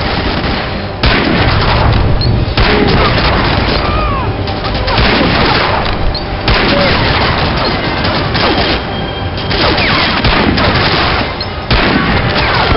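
Rifle shots boom loudly, one at a time, with a short pause between them.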